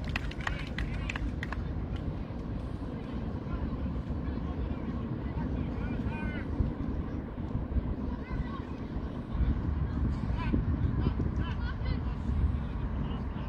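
Distant players shout and call out across an open field.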